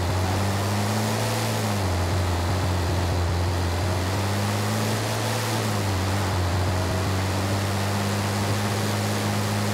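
Tyres hiss over loose sand.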